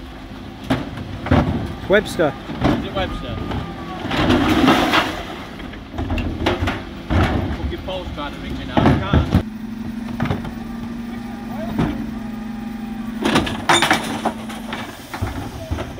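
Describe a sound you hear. Plastic wheelie bins bang and rattle against the truck.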